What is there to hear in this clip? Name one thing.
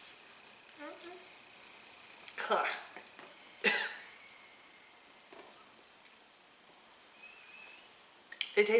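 A man blows hard into a balloon.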